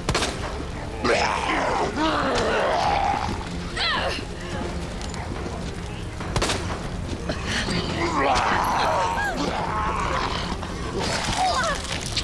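Monsters shriek and growl close by.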